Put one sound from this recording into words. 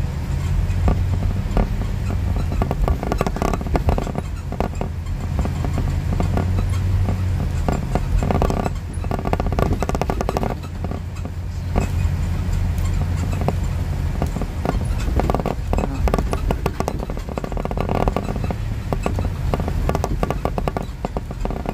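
A car drives along a street, with a low road rumble heard from inside.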